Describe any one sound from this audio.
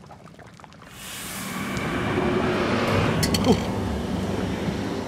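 A broth bubbles and sizzles in a hot pot.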